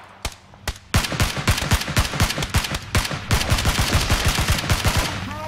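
A rifle fires in rapid bursts in a video game.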